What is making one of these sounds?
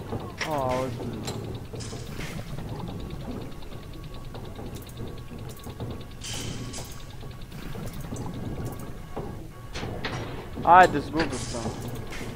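Mechanical tiles click into place.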